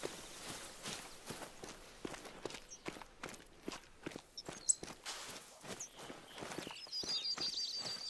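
Footsteps crunch over loose stones.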